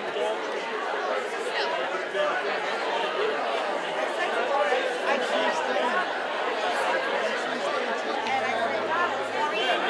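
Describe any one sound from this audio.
An audience chatters in the background.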